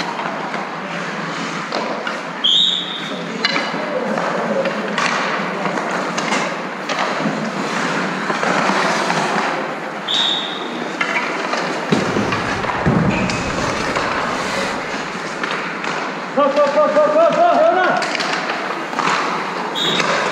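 Skates scrape and hiss across ice close by.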